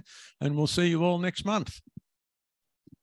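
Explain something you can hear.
An elderly man speaks calmly into a microphone through a loudspeaker.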